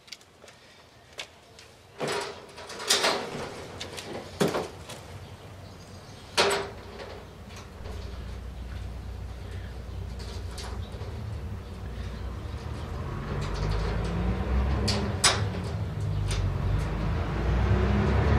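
A man works a padlock with sharp metal clicks and rattles.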